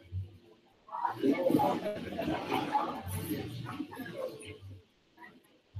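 A group of people chatter and murmur nearby.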